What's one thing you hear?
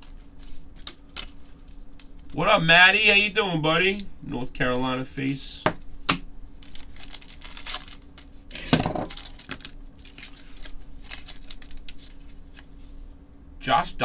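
Card packs rustle and crinkle as hands open them.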